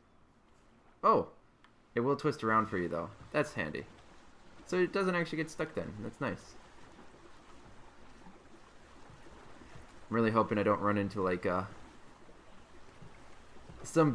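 Gentle water laps softly against a small wooden raft.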